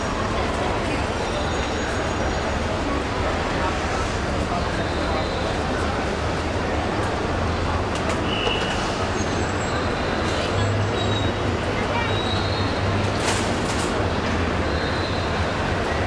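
Busy traffic hums and rumbles steadily outdoors.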